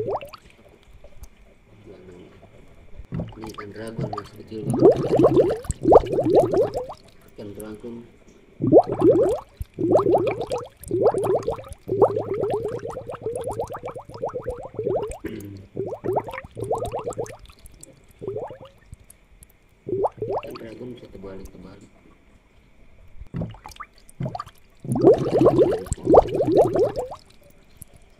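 Water bubbles softly in a fish tank.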